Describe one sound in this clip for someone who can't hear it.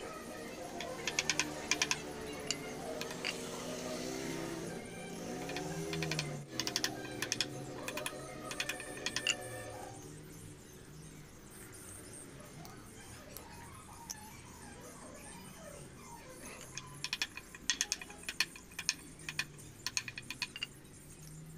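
A hammer taps a chisel into wood in quick bursts of sharp knocks.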